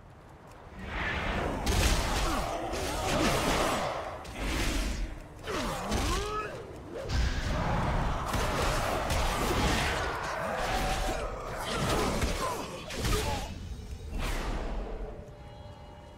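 Magic blasts whoosh and crackle in rapid bursts.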